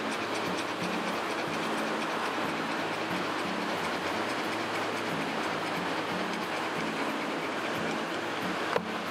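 Ocean waves break and wash onto a shore nearby.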